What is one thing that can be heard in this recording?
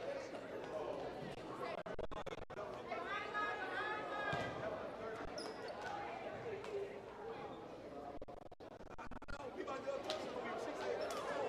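A crowd chatters and murmurs in a large echoing hall.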